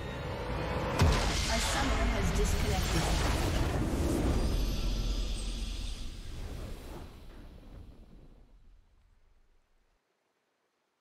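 A triumphant orchestral fanfare swells, then slowly fades to silence.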